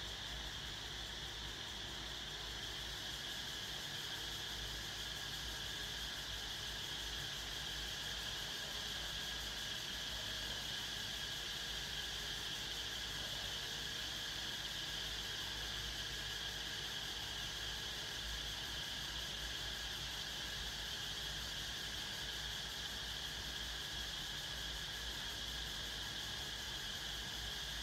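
An electric fan hums steadily nearby.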